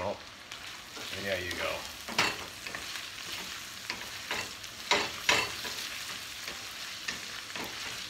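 Food sizzles softly in a pan.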